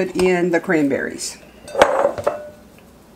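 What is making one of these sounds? A plastic bowl clicks and knocks as it is lifted off a food processor base.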